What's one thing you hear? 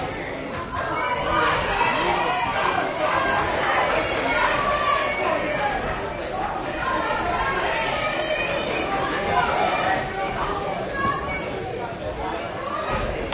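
A crowd of men and women chatters throughout a large echoing hall.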